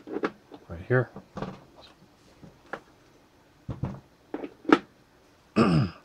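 A cable plug clicks and knocks into a socket.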